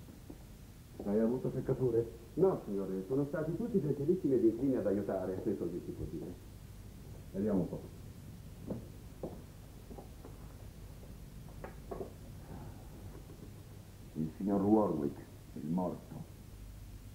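A middle-aged man talks nearby in a calm, firm voice.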